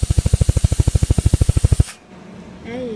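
A laser welder buzzes with rapid, even pulses.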